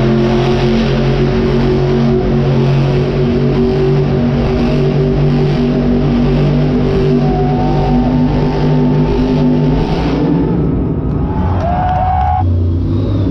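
A crowd murmurs and cheers throughout the arena.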